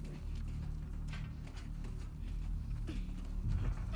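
A woman climbs a metal ladder with clanking steps.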